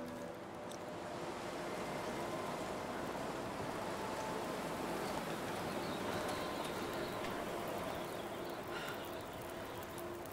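A campfire crackles and hisses.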